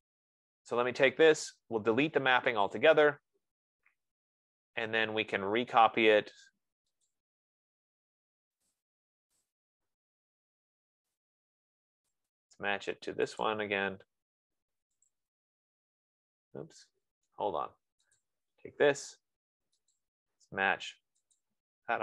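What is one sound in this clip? A man speaks calmly into a microphone, explaining in short bursts with pauses.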